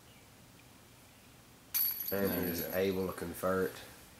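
A flying disc clatters into metal chains.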